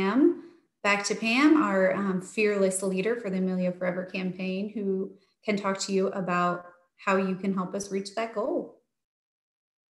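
A woman speaks calmly through a microphone on an online call.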